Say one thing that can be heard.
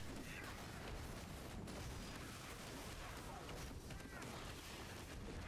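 Sword strikes clash and whoosh in a fast fight.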